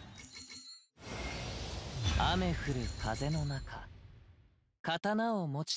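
A deep, swelling whoosh builds and bursts.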